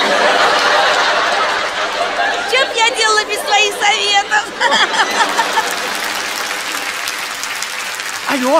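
A large audience laughs and applauds loudly in a big hall.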